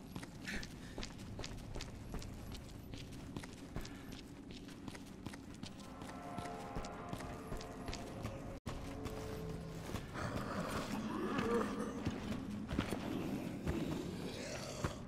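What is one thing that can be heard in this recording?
Heavy boots thud in footsteps on hard floors and metal stairs.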